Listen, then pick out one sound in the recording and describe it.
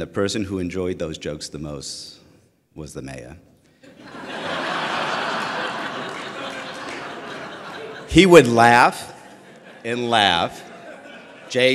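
A middle-aged man speaks into a microphone to an audience, with pauses.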